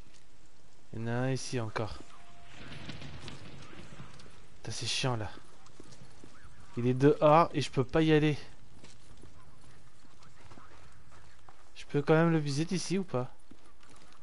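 A young man speaks in short bursts through a headset microphone.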